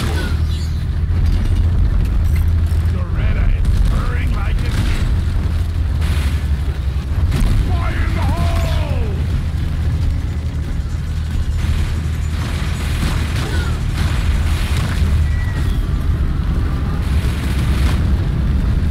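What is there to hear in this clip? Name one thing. Rocks crumble and clatter as they break apart.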